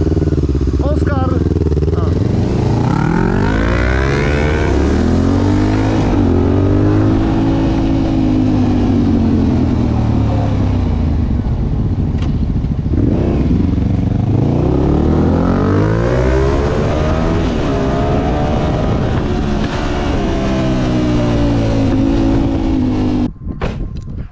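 Wind buffets loudly against the rider.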